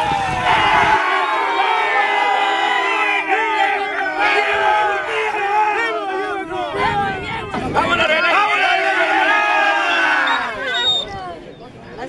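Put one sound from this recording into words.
A crowd of men and women cheers and shouts loudly outdoors.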